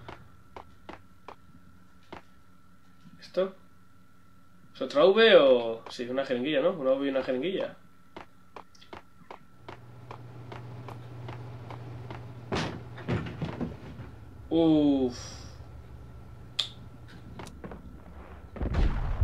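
Footsteps tap steadily on a hard floor in an echoing space.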